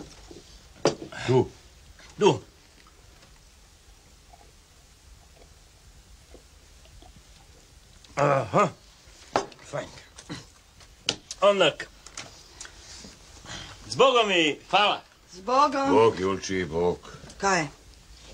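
A man talks calmly nearby, with pauses.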